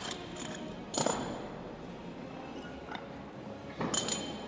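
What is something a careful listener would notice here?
A heavy barbell's weight plates clank as it is lifted.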